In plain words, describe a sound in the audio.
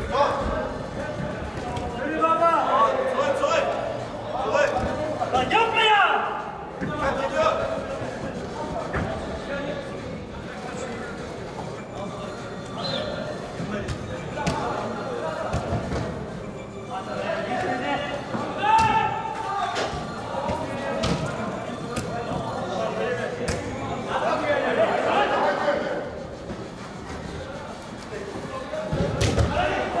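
A ball thuds against boots and the boards now and then.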